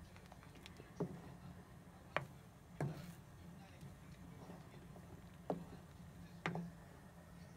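A spoon knocks lightly against the side of a metal pot.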